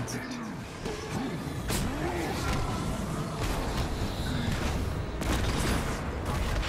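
Heavy punches land with loud, crunching thuds.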